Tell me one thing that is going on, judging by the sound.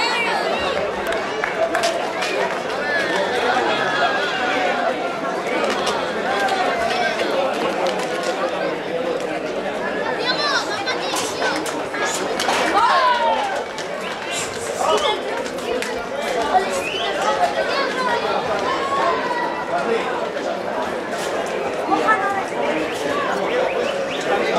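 Hooves clatter on pavement as a young bull runs.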